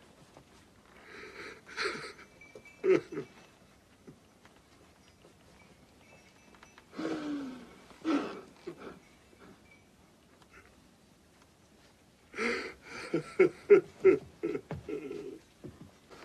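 A man sobs and cries out in grief close by.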